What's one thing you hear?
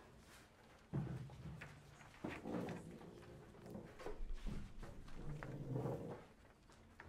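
A violin plays a few soft notes.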